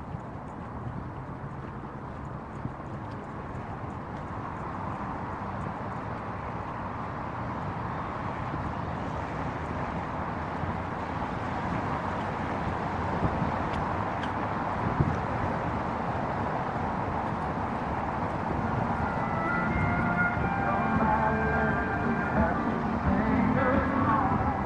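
Footsteps tap steadily on paving.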